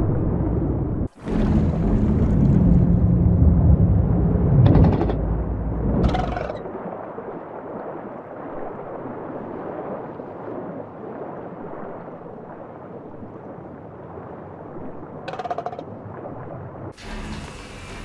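Water rumbles and swirls deep underwater.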